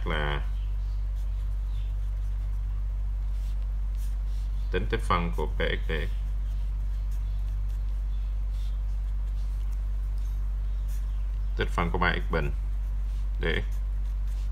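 A marker pen scratches softly on paper.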